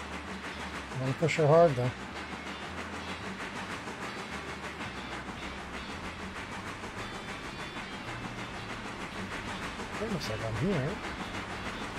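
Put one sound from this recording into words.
A steam whistle blows twice.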